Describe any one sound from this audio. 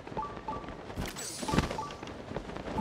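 A sharp magical burst flares up with a bright whoosh.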